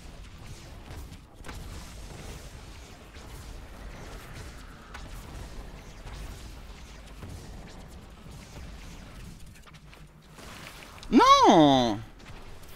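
Magic blasts and explosions crackle and boom rapidly.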